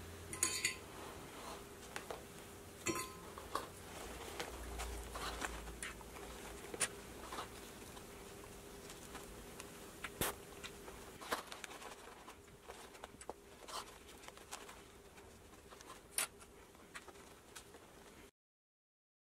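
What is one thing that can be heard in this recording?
Stiff fabric rustles and crinkles under handling.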